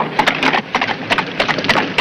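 A horse's hooves clop on a wet street.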